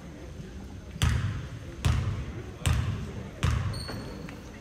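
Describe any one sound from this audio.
A basketball bounces on a wooden floor several times.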